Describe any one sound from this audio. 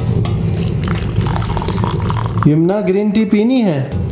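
Liquid pours from a pot into a cup.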